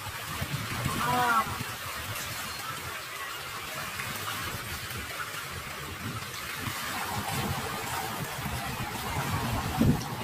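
Small waves lap and wash gently over the shallows.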